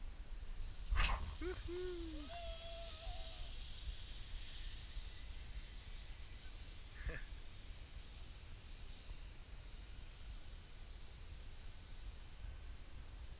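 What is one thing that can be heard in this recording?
A zip line pulley whirs along a cable and fades into the distance.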